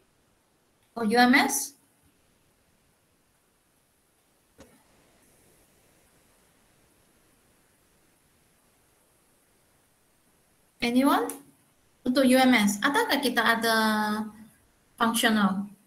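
A woman speaks calmly through an online call, in short bursts with pauses.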